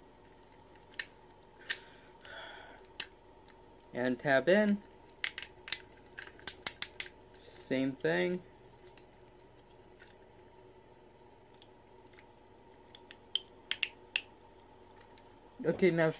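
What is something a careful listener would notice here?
Plastic toy parts click and snap as they are twisted.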